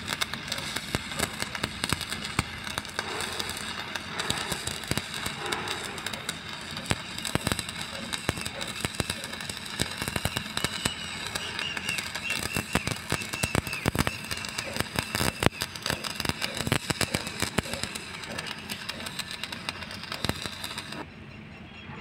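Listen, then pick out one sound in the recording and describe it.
An electric welding arc crackles and sizzles loudly.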